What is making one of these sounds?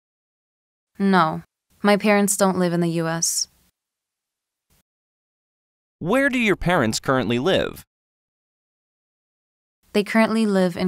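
A young woman speaks calmly and clearly, close up.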